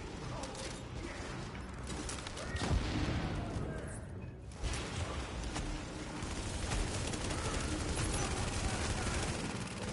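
Rapid gunfire rattles and echoes.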